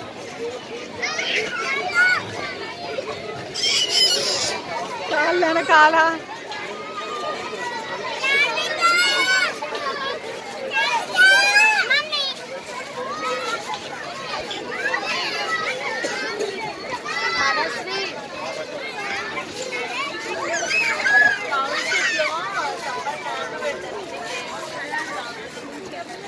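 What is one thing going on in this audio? Young children shout and squeal excitedly nearby.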